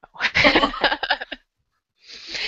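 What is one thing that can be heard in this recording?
A woman laughs through a headset microphone on an online call.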